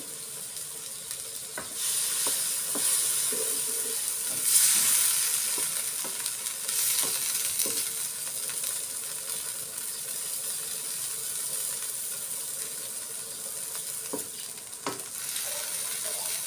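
A wooden spatula scrapes and knocks against a metal pan.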